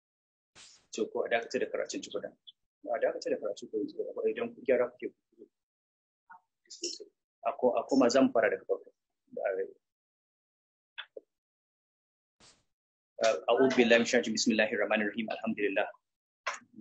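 A man speaks calmly and deliberately over an online call, with long pauses.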